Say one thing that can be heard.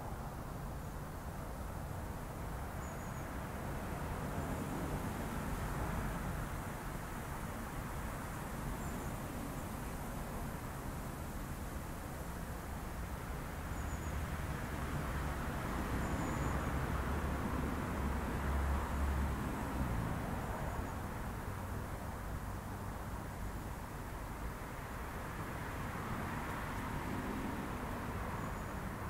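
A car engine idles close by with a steady low rumble.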